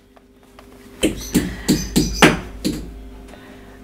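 A toddler taps a stick against a plastic bowl.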